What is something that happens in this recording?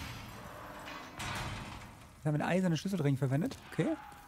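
An iron gate creaks as it swings open.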